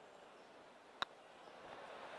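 A putter taps a golf ball once.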